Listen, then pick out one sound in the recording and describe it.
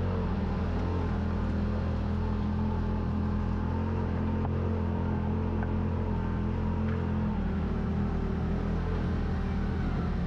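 Tyres crunch over loose rocks.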